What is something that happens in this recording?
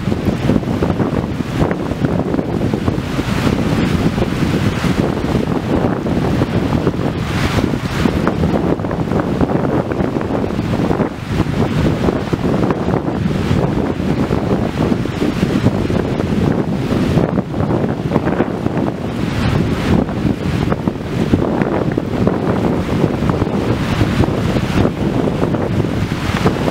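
Waves break and wash onto a shore.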